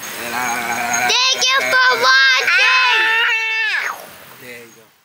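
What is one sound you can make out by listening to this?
A young girl talks playfully close by.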